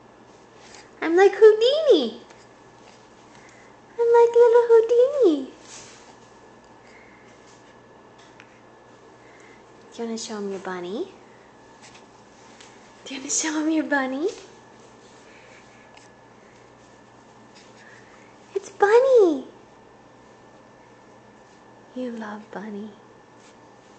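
A baby coos and squeals in short bursts close by.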